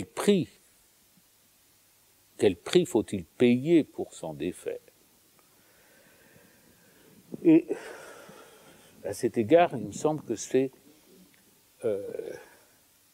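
An elderly man speaks calmly and thoughtfully, with pauses.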